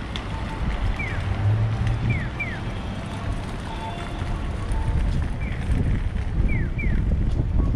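A pedestrian crossing signal chirps in short falling tweets.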